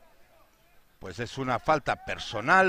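A man speaks loudly and firmly to a close group of players.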